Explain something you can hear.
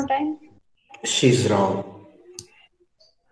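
Another woman speaks briefly over an online call.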